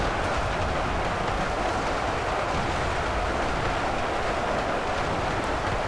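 A huge battle crowd roars and clashes steadily.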